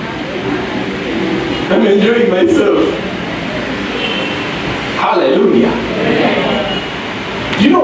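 A man speaks with animation through a microphone, heard over a loudspeaker.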